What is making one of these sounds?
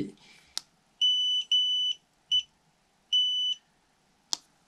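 An electronic device beeps in short, high bursts as its button is pressed.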